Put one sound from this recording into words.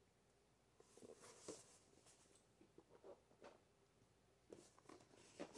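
A cardboard box rustles and bumps as it is handled.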